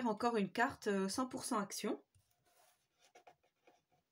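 Small paper pieces rustle softly as a hand sets them down.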